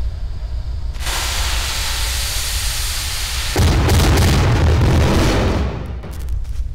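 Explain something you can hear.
Fireworks burst and bang loudly in a rushing blast.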